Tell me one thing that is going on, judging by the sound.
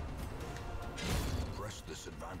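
A pickaxe strikes with a heavy thud.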